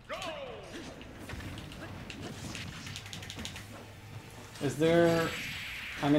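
Video game fight effects crash and whoosh with sharp hits.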